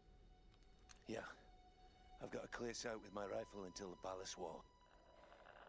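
An older man speaks calmly.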